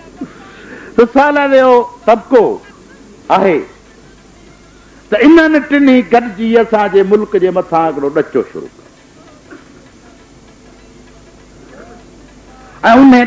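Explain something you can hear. An elderly man speaks forcefully into a microphone in bursts, with pauses between phrases.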